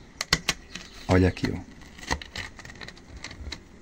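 A plastic sheet crinkles.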